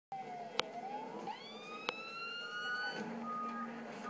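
A fire truck siren winds up and rises in pitch.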